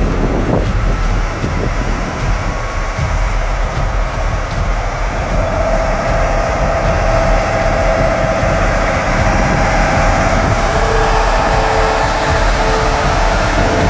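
A bus engine rumbles as it drives through deep water.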